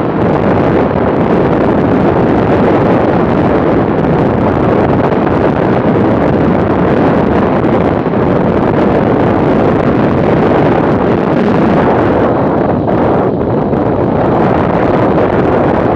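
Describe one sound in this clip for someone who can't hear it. Strong wind roars steadily against a moving motorcycle.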